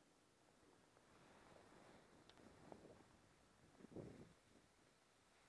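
Skis scrape and hiss across crusty snow, close by.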